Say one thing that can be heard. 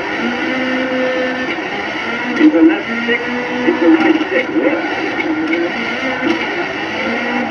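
A rally car engine revs loudly from a game's speakers, rising and falling.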